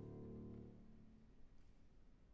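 A piano plays along.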